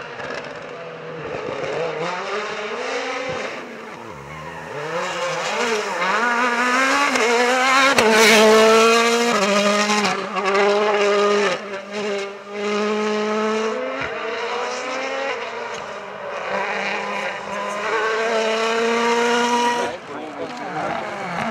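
A rally car engine roars and revs hard as cars race past one after another.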